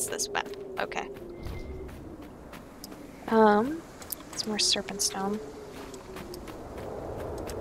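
Footsteps crunch on sand.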